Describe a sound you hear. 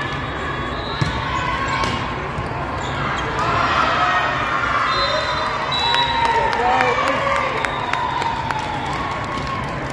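Girls shout and cheer in a large echoing hall.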